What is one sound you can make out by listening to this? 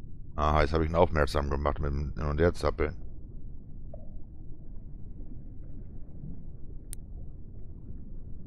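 A low, muffled underwater rumble drones steadily.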